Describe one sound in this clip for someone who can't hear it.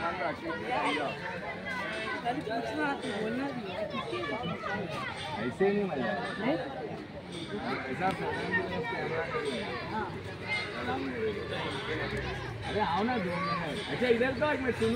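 Several young men and boys talk over one another nearby outdoors.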